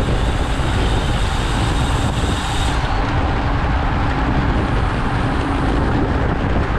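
Wind buffets loudly across the microphone.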